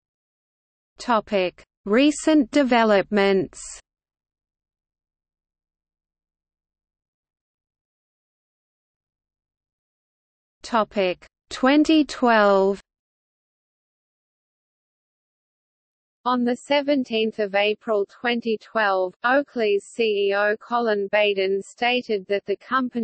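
A man speaks calmly, close to a microphone, in short bursts with pauses.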